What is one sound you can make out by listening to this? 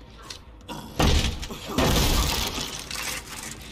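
Wooden boards crash and splinter as they are smashed.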